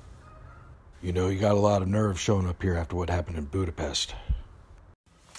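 A middle-aged man speaks with animation close to the microphone.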